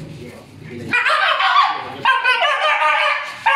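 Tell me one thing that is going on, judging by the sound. A dog whines and yelps in high, shrill cries.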